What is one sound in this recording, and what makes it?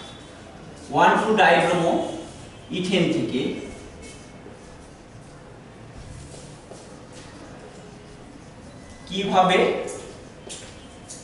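A man speaks calmly nearby in short bursts.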